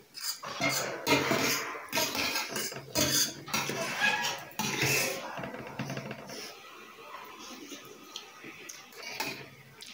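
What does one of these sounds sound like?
A spoon scrapes against a metal plate.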